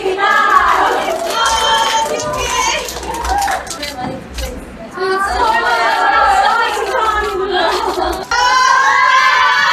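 Young women clap their hands.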